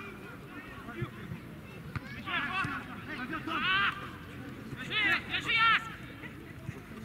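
A football is kicked with dull thuds some distance away.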